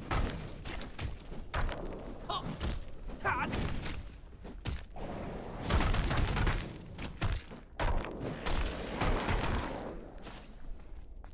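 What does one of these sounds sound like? Magic blasts and blade strikes crash and whoosh in a fight.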